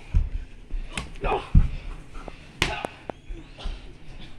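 Thuds and bumps sound on the floor.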